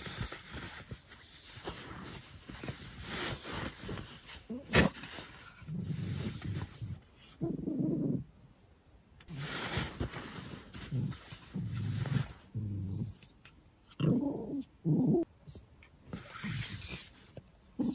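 Fabric rustles as a bag is handled.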